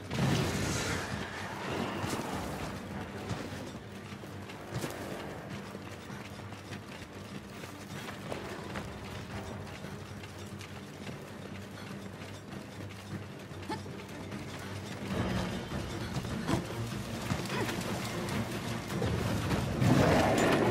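Footsteps thud quickly over the ground.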